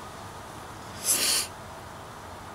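A man sniffs at close range.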